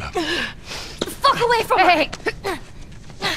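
A girl shouts angrily.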